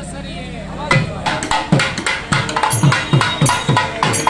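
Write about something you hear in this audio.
A reed pipe plays a fast, wavering melody up close.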